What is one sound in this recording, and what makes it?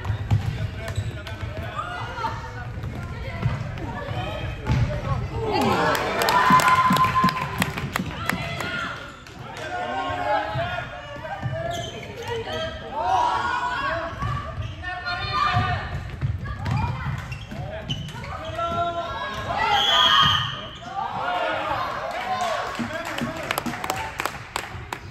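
Plastic sticks clack against a ball and against each other.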